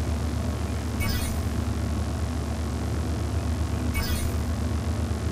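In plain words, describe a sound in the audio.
Short interface chimes ring out as menu items are selected.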